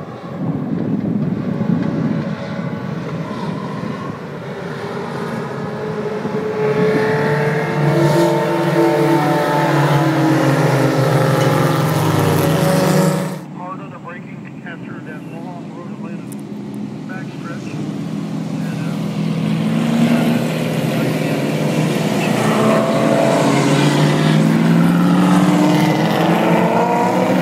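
Racing car engines roar and whine as the cars pass by outdoors.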